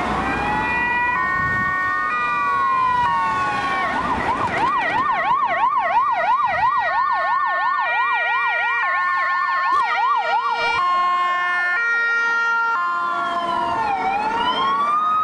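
A police van's siren wails and yelps.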